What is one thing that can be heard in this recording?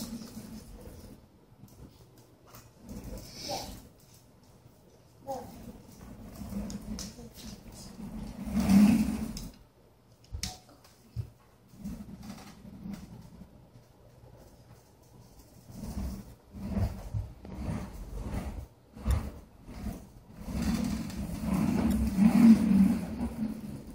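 A high chair's wheels roll and rattle across a wooden floor.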